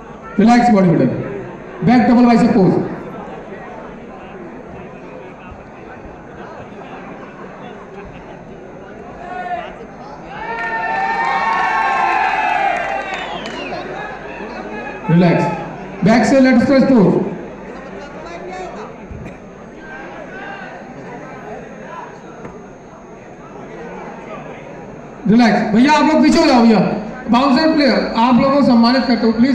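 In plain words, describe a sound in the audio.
A crowd of young men shouts and cheers loudly in a large hall.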